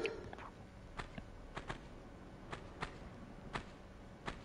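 Footsteps tap on a stone floor at an even pace.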